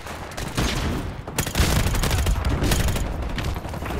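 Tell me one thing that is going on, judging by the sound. A suppressed rifle fires in quick bursts.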